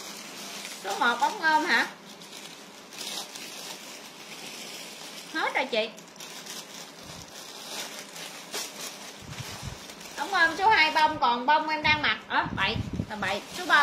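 Plastic wrapping crinkles and rustles in a young woman's hands.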